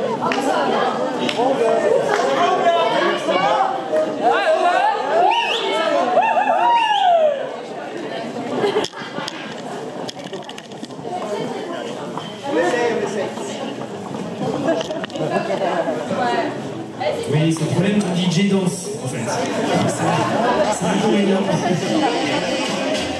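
A man talks through a loudspeaker in a large echoing hall.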